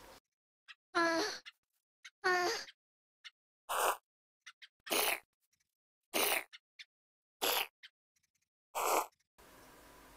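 A zombie groans and snorts every second or so.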